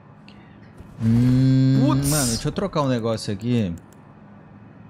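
A young man speaks with animation, loud and close to a microphone.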